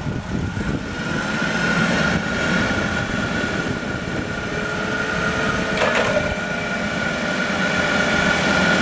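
A forklift mast whines as the forks rise.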